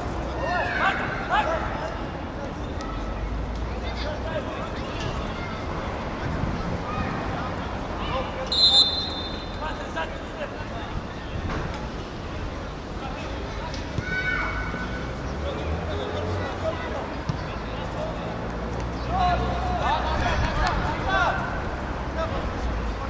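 Young men shout to each other across an open field, heard from a distance.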